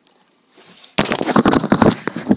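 A microphone rustles as it is handled.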